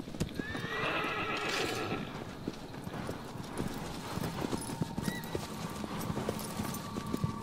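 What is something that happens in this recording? Horse hooves gallop steadily over grass.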